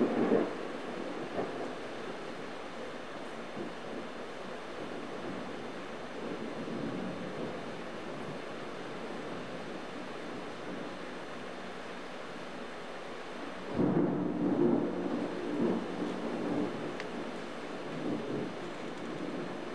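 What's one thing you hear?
Wind rustles through trees.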